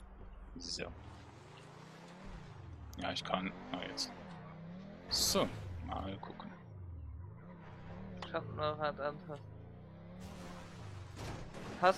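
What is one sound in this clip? A car engine hums and revs up and down.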